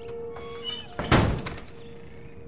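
A heavy door slams shut with a loud bang.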